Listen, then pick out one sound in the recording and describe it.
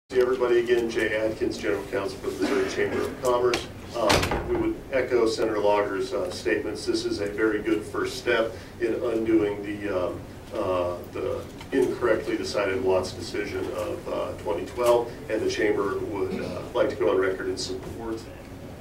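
A woman speaks calmly into a microphone in a large echoing room.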